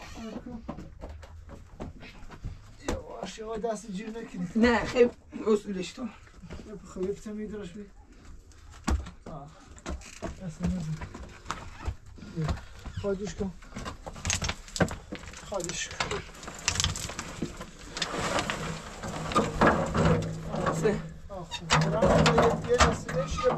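A metal wheelbarrow rattles and clanks as it is moved.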